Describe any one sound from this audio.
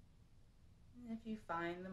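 A young woman speaks softly and calmly close by.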